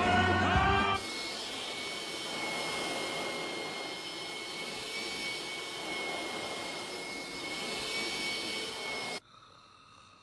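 A vacuum cleaner hums steadily.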